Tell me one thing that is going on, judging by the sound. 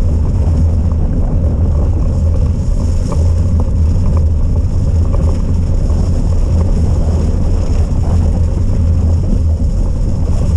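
Wind rumbles and buffets steadily against the microphone.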